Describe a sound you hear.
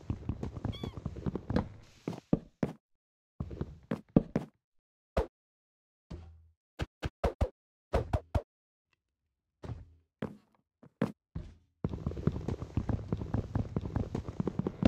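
Wood is struck with rapid, repeated knocks.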